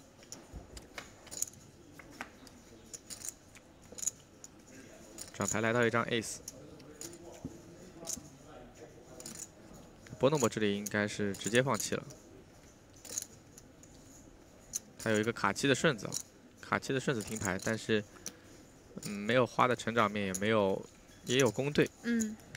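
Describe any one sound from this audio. Poker chips click together.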